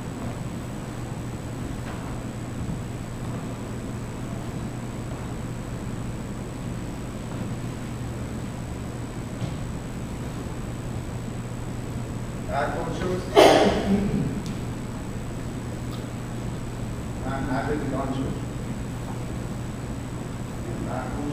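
Shoes slide and tap softly on a wooden floor.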